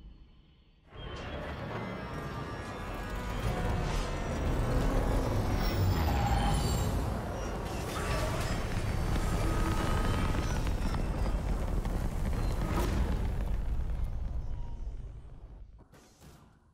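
A spacecraft's engines roar steadily as it flies and lands.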